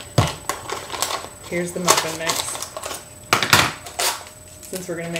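A carton rustles and knocks as it is handled.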